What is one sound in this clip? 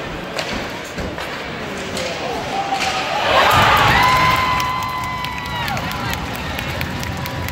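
Hockey sticks clack against a puck on ice.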